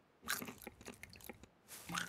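A rabbit chews softly on a berry.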